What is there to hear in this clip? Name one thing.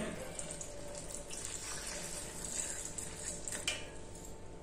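Liquid pours into a metal cup.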